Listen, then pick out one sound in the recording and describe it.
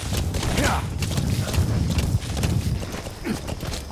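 Hooves thud as a horse gallops over dry ground.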